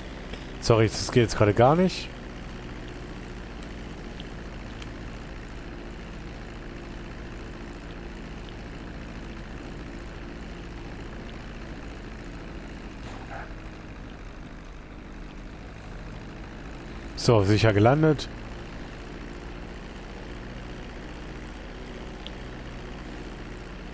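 A twin-engine propeller plane drones as it taxis along a runway.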